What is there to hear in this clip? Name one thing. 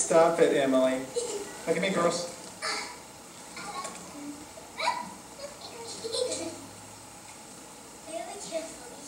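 Young children chatter and squeal excitedly close by.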